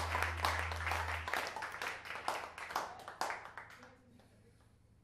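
An audience claps and cheers loudly, then the applause fades.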